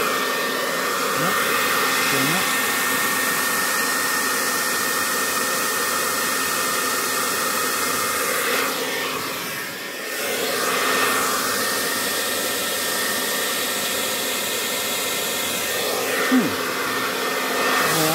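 A hair dryer blows with a steady, loud whoosh.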